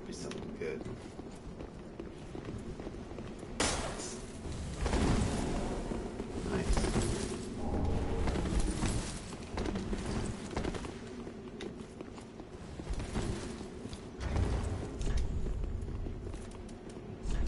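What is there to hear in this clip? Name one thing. A young person talks with animation close to a microphone.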